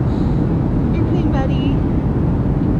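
A baby babbles briefly close by.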